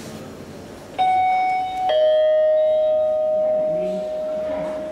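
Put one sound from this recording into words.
An elevator chime rings twice as it arrives.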